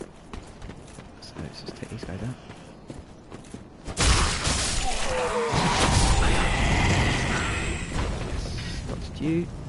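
Armoured footsteps crunch over rough ground.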